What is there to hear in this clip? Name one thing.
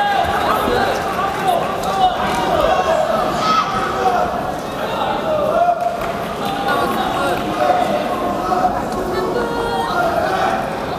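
A crowd of spectators shouts and chatters throughout a large echoing hall.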